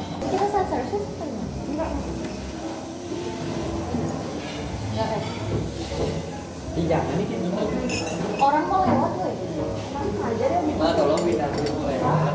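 Glasses clink and knock on a wooden table.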